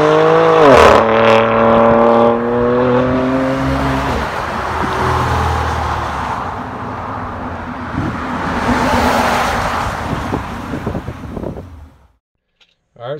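A car engine revs loudly and roars past on the road.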